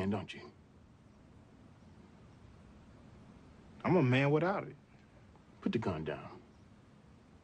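A man speaks in a low, calm voice close by.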